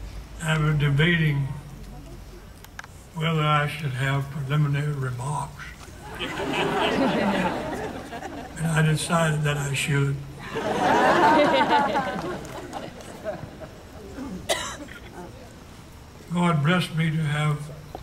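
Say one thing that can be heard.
An elderly man speaks slowly and deliberately through a microphone and loudspeakers outdoors.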